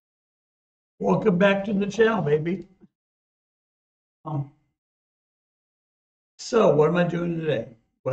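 A middle-aged man speaks calmly and close up, in bursts with pauses.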